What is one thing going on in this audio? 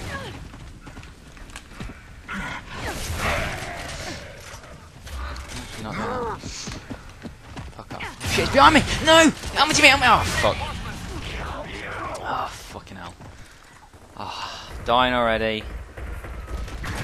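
A young man talks excitedly close to a microphone.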